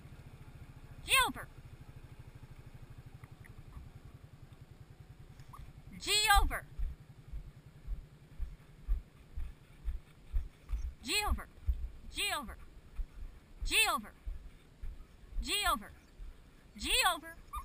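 Sled dogs yelp and whine excitedly.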